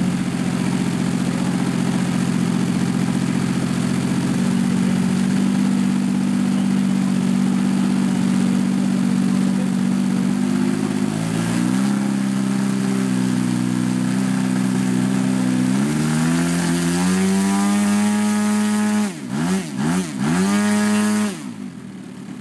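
A model jet engine hums steadily, rises in pitch, then cuts off.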